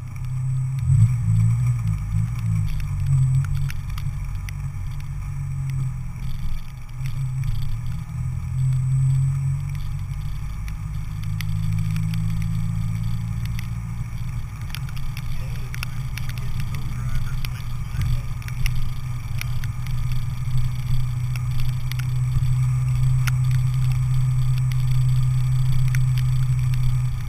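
Raindrops tap against the car.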